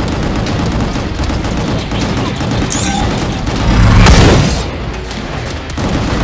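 Heavy electronic music thumps with a steady beat.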